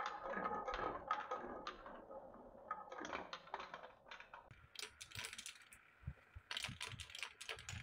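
Glass marbles click against each other and the wood.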